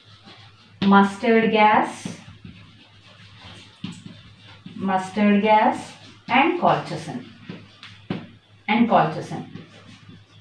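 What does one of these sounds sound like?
A young woman speaks calmly in short phrases, as if lecturing nearby.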